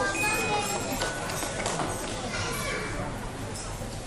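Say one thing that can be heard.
A children's choir sings softly.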